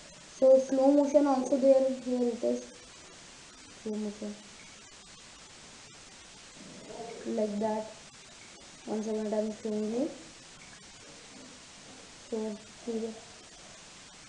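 A boy speaks close by, in short bursts with pauses.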